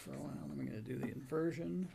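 A plastic lid clicks shut on a small device.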